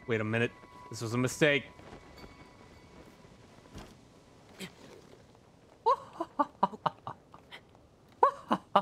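Hands and feet scrabble on rock while climbing.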